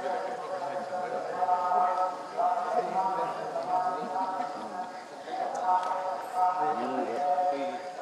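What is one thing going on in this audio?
A small crowd murmurs outdoors.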